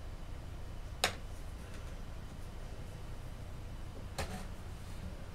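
A hand knocks an object sharply against a hard surface a couple of times.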